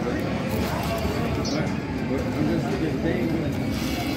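A ticket feeder whirs as a paper ticket is drawn into a machine.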